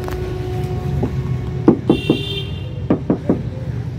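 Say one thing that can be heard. A car door handle clicks.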